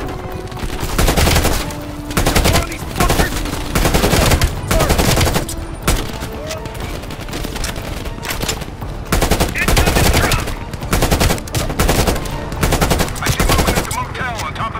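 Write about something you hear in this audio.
An automatic rifle fires loud rapid bursts.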